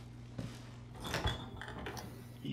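A refrigerator door creaks open.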